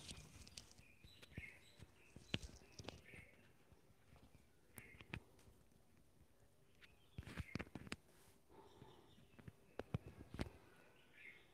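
Pages rustle and flip.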